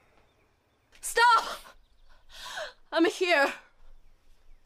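A young woman cries out loudly and pleads.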